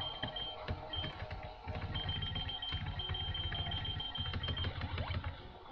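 Short electronic beeps sound from a video game menu.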